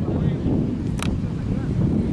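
A football thuds off a player's foot.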